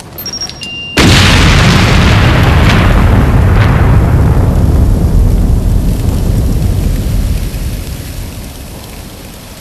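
A loud explosion booms and rumbles, slowly fading.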